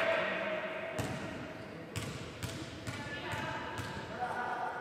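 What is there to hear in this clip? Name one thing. A basketball bounces on a wooden gym floor in an echoing hall.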